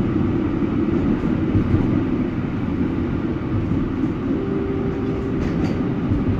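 A vehicle's engine rumbles steadily from inside as it rolls along the road.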